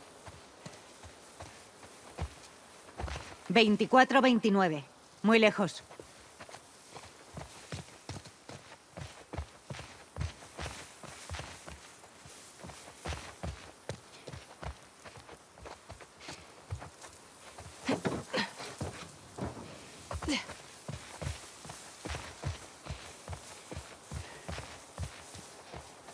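Quick footsteps run over the ground.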